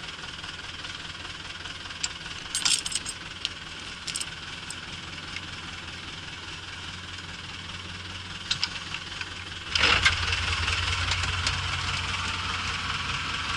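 A tractor engine rumbles steadily, then grows louder.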